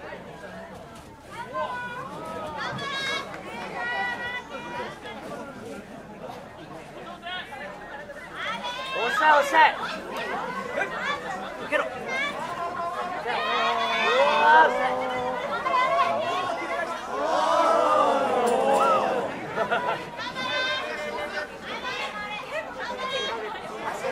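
A crowd of people cheers and shouts outdoors.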